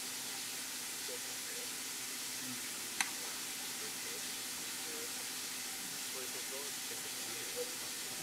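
A young woman talks quietly nearby.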